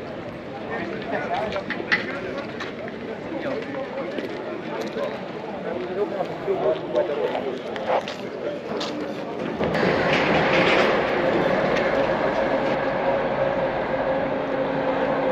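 A crowd of men and women chatter and murmur outdoors.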